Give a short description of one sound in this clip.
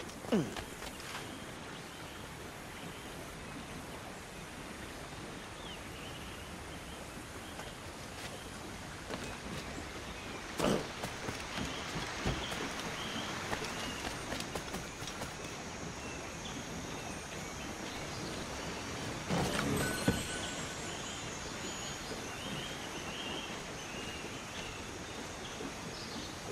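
Footsteps crunch on earth and grass.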